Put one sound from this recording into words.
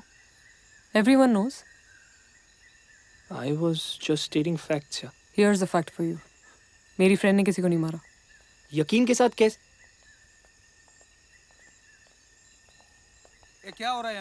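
A young woman speaks quietly and closely.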